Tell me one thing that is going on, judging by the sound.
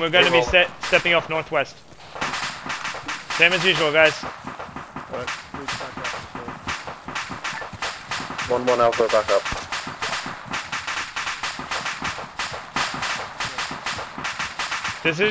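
Footsteps crunch quickly through undergrowth.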